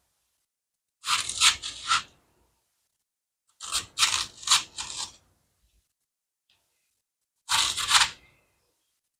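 A knife slices crisply through melon rind in short bursts.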